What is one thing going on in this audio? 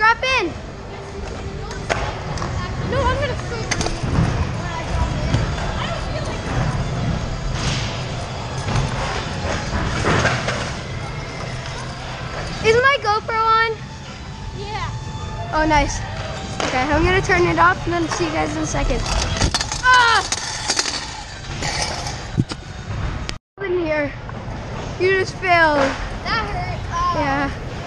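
Scooter wheels roll and rumble on smooth concrete.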